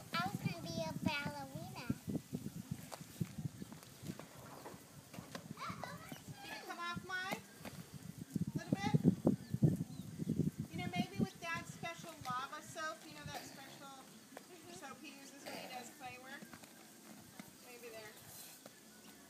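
Young children talk and call out playfully close by.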